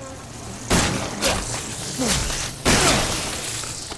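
A swarm of insects buzzes.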